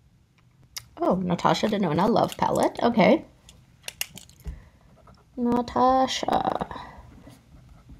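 A young woman speaks calmly and close by, as if into a microphone.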